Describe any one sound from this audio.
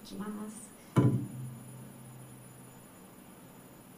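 An acoustic guitar is strummed once and rings out.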